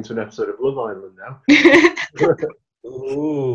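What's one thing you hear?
A young man laughs and talks over an online call.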